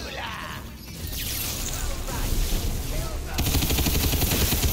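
A rapid-fire energy gun shoots in quick bursts.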